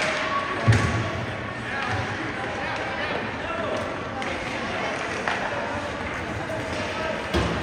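Skates scrape and glide across ice.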